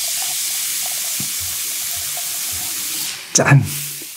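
Soda fizzes as it is poured into a glass.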